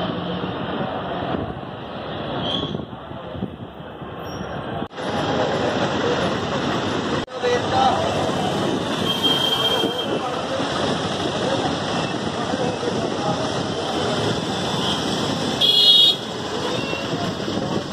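Street traffic rumbles steadily outdoors.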